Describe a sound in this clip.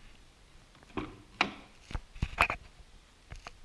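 A car door handle clicks and the door latch pops open.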